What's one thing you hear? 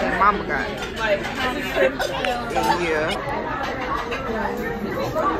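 Forks clink against plates.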